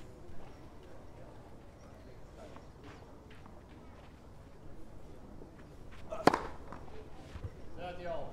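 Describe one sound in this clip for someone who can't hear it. A tennis ball bounces on a clay court with dull thuds.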